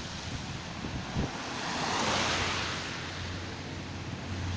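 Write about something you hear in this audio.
A car hisses past on a wet road.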